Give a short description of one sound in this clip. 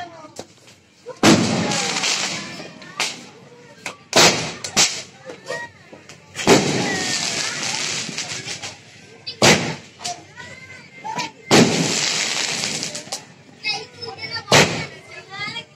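A fountain firework hisses and crackles.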